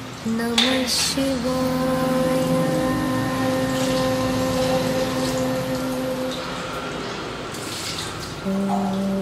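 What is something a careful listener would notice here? Metal vessels clink softly.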